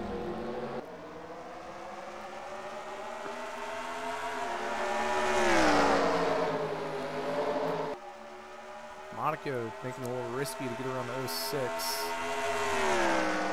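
Racing car engines roar, rising and falling in pitch as they shift gears.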